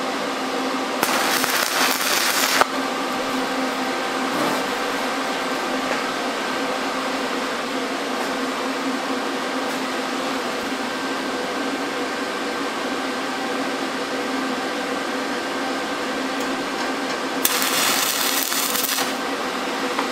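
A welding arc crackles and sizzles in short bursts.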